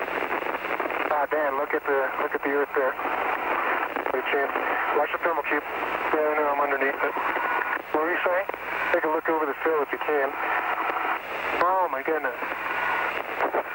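A man speaks calmly over a hissing, crackling radio link.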